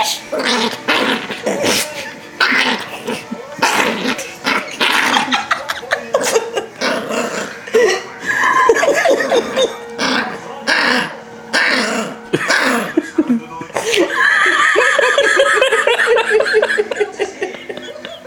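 A small dog growls and grumbles playfully.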